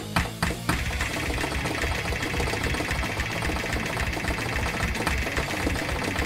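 Keys on a keyboard tap rapidly.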